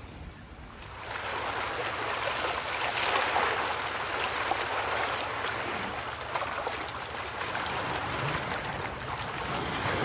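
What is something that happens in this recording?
Shallow water laps and splashes close by.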